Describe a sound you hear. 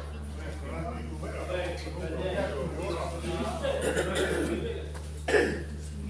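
Men talk in a small echoing hall.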